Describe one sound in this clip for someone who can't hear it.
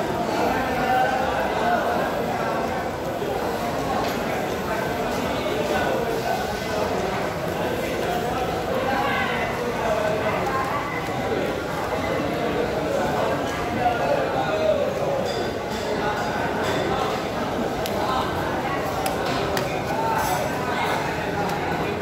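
A knife slices through raw fish flesh.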